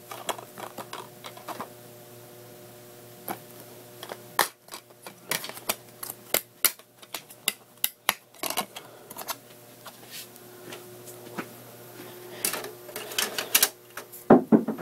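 Cloth rustles and brushes close by.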